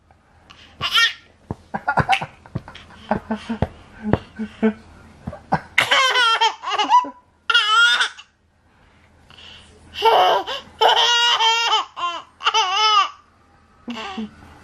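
A toddler boy laughs loudly and giggles nearby.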